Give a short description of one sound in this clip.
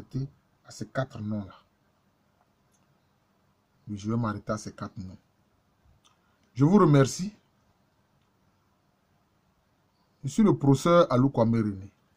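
A man speaks calmly in short bursts with pauses, close to the microphone.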